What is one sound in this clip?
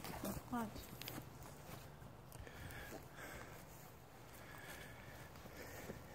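A small child's footsteps brush through grass.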